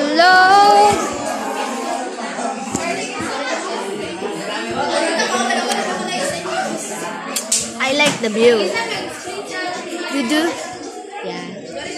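A girl talks close up in a lively way.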